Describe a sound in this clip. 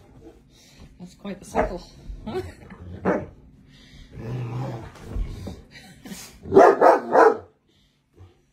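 A dog barks.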